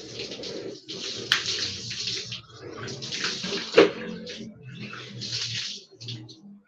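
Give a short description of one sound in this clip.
Water splashes down onto a hard floor in repeated bursts.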